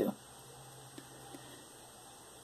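Fingers fiddle with a small plastic part, making faint clicks.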